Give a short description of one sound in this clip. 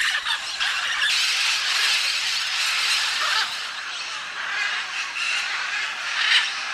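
Macaws call harshly as they fly past.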